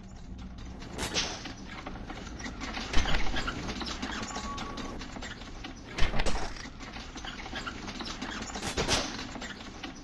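Blades strike with sharp metallic clangs.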